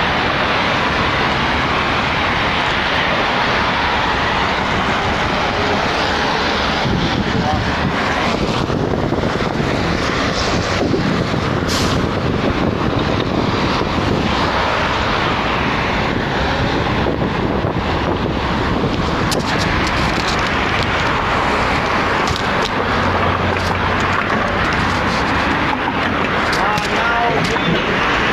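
Wind buffets loudly across the recorder.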